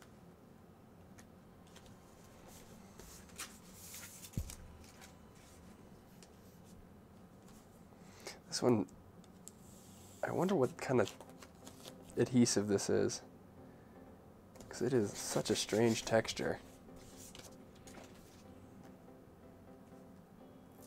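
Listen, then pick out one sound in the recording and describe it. Paper rustles as a sticker is handled.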